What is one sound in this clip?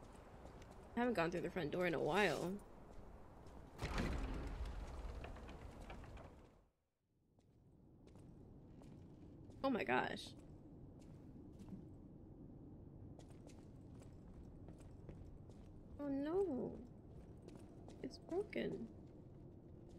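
A young woman talks with animation into a close microphone, now and then.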